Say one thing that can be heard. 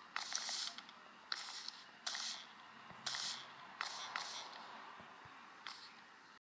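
Wooden blocks crunch with short, scratchy bursts as they are placed, again and again.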